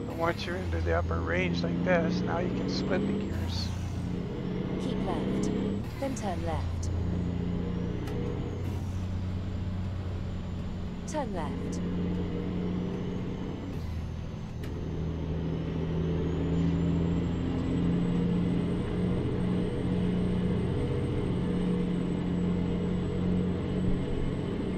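A truck engine drones steadily, rising and falling as the truck shifts gears.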